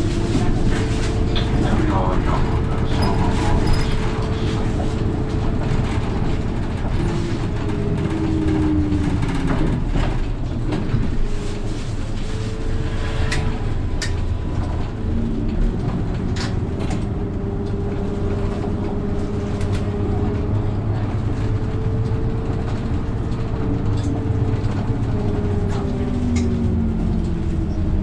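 The bus body rattles and clicks over the road.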